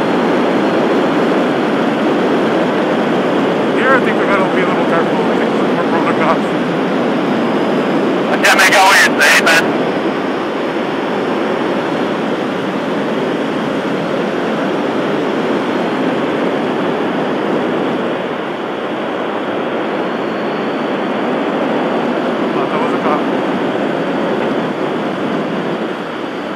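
Strong wind rushes loudly past a motorcycle rider at highway speed.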